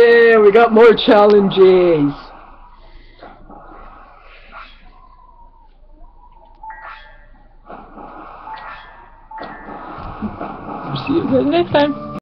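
Video game music and sound effects play from a television speaker.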